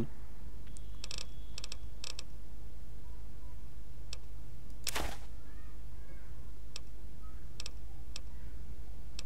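Soft menu clicks tick now and then as items are scrolled through.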